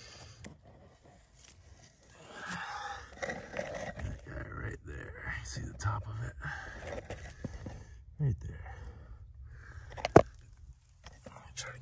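A metal digging tool scrapes and knocks against dry soil.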